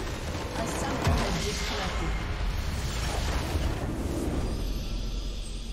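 A large structure in a video game explodes with a deep rumbling blast.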